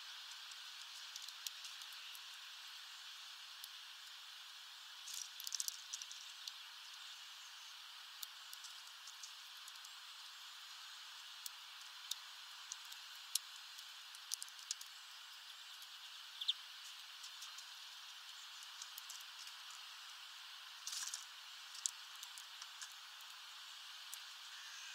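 A small bird cracks seeds with sharp little clicks.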